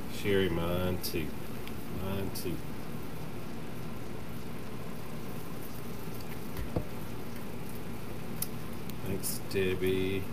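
Stiff ribbon and leaves rustle as a man arranges a wreath.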